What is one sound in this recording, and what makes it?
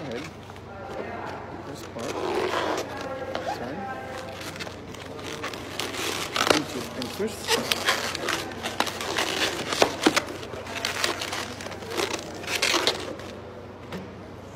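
Rubber balloons squeak and rub as they are twisted.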